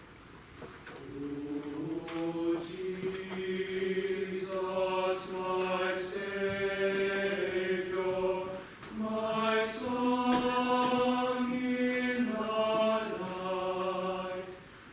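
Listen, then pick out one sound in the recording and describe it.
A choir sings in harmony in a large echoing hall, starting softly and swelling.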